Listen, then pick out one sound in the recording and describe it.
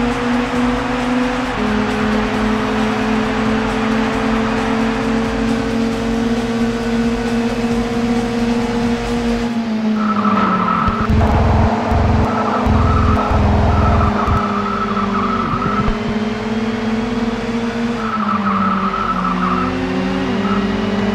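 A racing car engine drones at high revs, its pitch dipping as it shifts gears.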